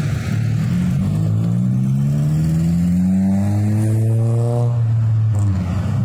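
A car engine revs up as the car accelerates past.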